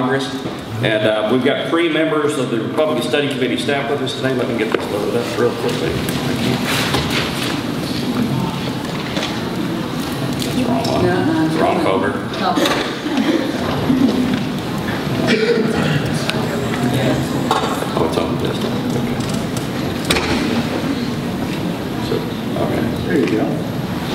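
A middle-aged man speaks steadily into a microphone.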